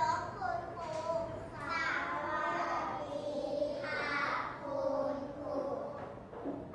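A group of young children chant together in unison, close by.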